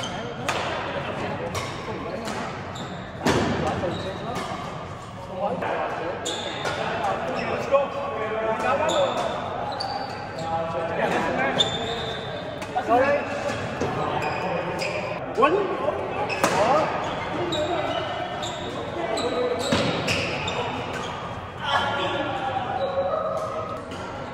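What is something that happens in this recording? Several men and women call out and chat with animation across the hall.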